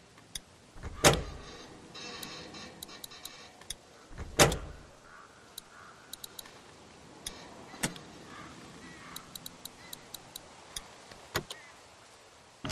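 Heavy metal switches clunk as they are flipped.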